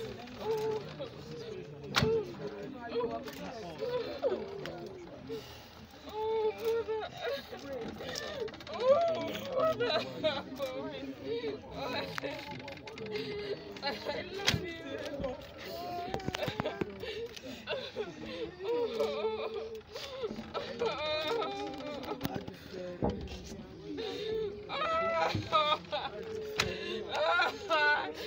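A crowd of women chatter and call out close by.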